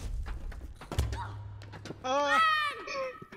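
A heavy punch lands with a crackle of electricity.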